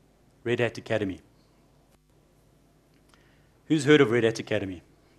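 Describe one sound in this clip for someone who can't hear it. A man speaks calmly into a microphone, in short bursts.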